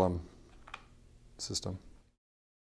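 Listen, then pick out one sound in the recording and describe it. A plug clicks into a socket.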